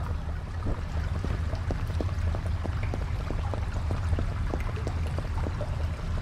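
Footsteps run on a hard stone floor.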